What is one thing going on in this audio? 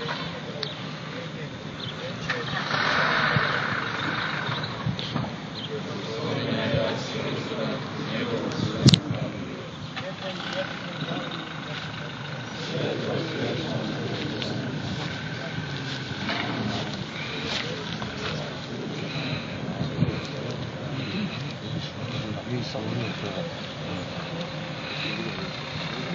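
A crowd of men murmurs and talks quietly outdoors.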